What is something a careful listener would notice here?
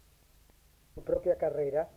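A woman speaks calmly through an old, hissy recording.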